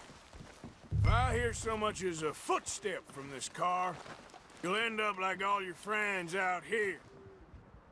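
A man speaks in a low, threatening voice nearby.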